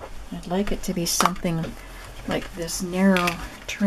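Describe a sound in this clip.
A roll of ribbon taps and rustles against paper.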